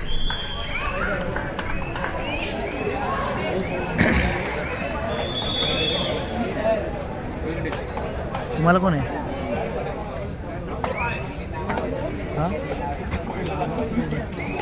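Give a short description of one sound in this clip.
Players call out loudly during the game.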